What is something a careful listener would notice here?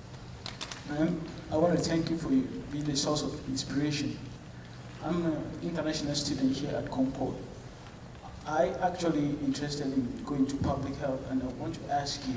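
A woman speaks calmly into a microphone over loudspeakers in a large echoing hall.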